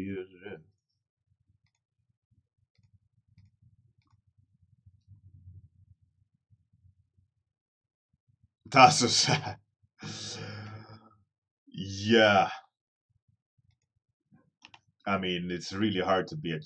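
A man talks calmly into a microphone, in short bursts.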